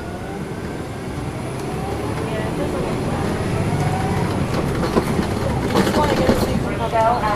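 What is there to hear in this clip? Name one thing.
A bus engine rumbles steadily from inside the moving bus.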